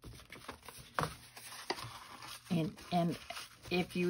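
Stiff paper cards rustle and tap as they are handled close by.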